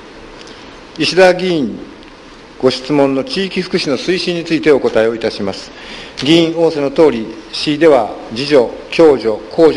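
An elderly man speaks calmly into a microphone, reading out.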